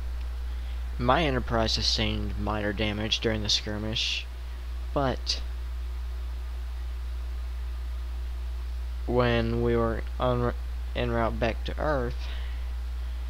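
A young man talks casually into a headset microphone, in short bursts with pauses.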